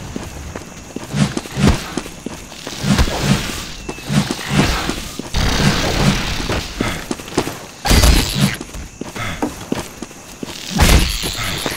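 A giant insect creature screeches and chitters.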